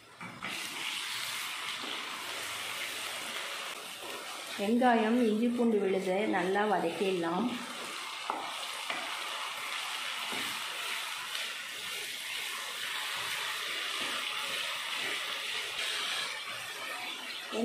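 A wooden spatula stirs and scrapes food in a pan.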